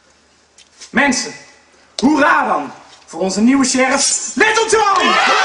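A man speaks loudly and dramatically.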